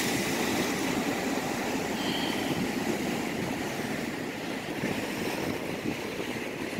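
Waves wash and break steadily against rocks.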